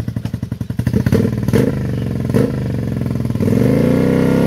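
A motorcycle engine idles with a lumpy, throbbing beat.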